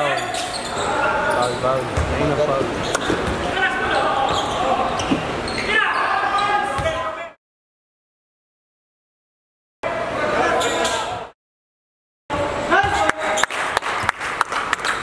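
A basketball bounces on a hardwood court.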